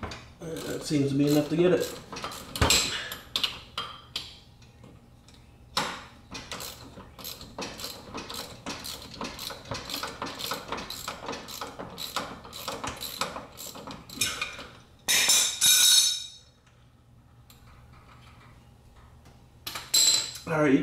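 Metal tools clink and knock against the car's underside.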